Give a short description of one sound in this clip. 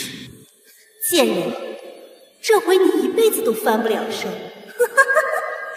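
A young woman speaks scornfully.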